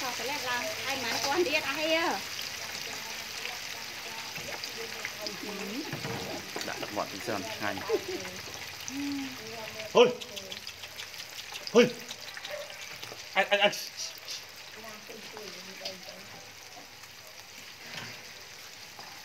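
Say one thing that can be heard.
Chicken pieces sizzle and bubble in hot oil in a deep fryer.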